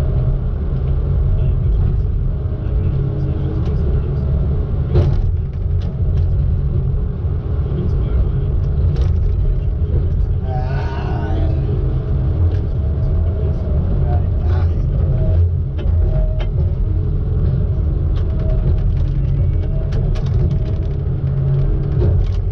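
Logs knock and clatter against each other.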